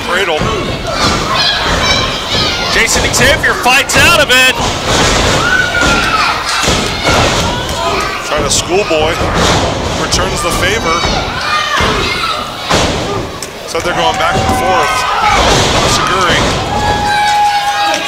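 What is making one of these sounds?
Bodies slam onto a wrestling mat with loud thuds.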